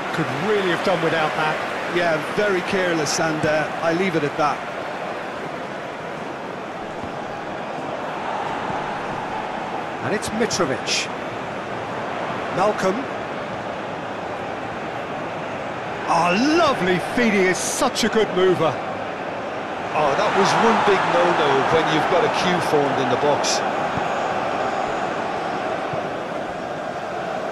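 A large crowd murmurs and cheers steadily in a big stadium.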